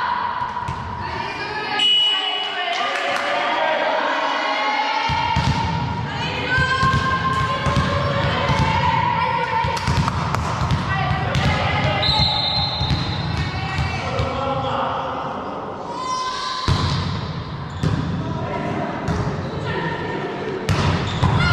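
Young women players shout and call out to each other.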